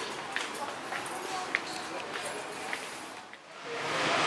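Footsteps walk along a paved walkway.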